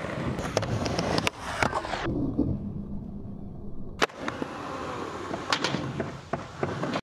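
A skateboard's wheels roll over concrete.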